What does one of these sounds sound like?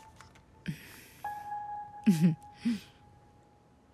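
A woman speaks briefly and calmly nearby.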